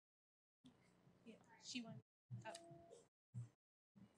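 A young woman speaks into a microphone with animation.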